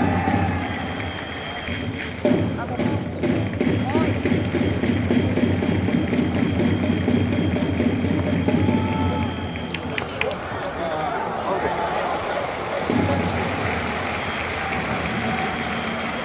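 A large crowd murmurs and cheers across an open stadium.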